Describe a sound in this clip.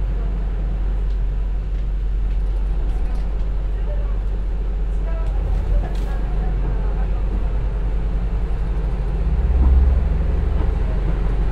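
A diesel railcar engine rumbles low and steadily.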